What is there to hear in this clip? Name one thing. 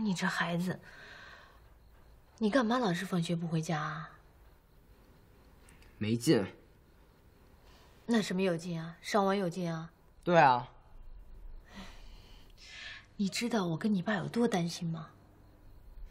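A woman scolds with worry, close by.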